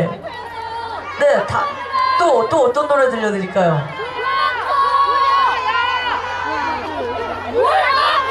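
A young man sings through a microphone over loudspeakers.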